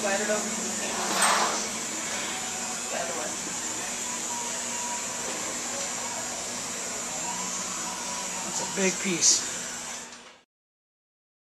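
A tattoo machine buzzes steadily nearby.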